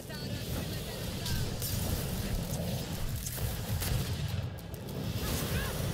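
Magic blasts whoosh and crackle during a fight.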